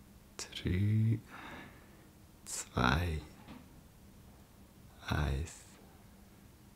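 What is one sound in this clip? A young man speaks softly and haltingly, close by, heard as if through an online call.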